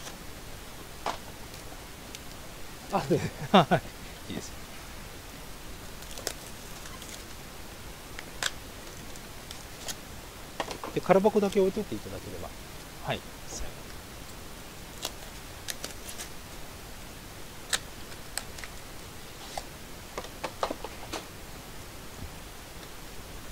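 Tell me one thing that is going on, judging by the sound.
Plastic-wrapped packs rustle and click as hands handle them.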